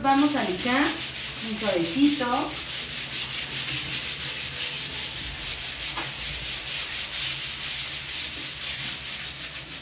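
A sheet of sandpaper rasps back and forth over a surface in quick, steady strokes.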